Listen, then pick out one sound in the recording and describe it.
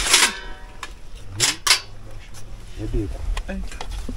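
A spoon scrapes food onto a metal plate.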